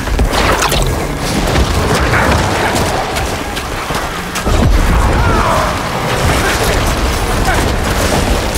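Weapons clash and strike monsters in rapid, noisy combat.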